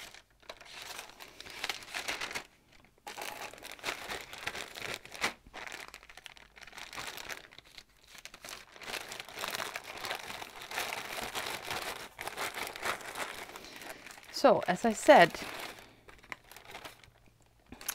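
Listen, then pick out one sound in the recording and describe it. Plastic bags crinkle and rustle close by.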